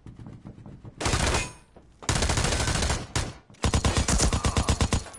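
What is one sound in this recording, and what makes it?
Rapid gunfire bursts loudly nearby.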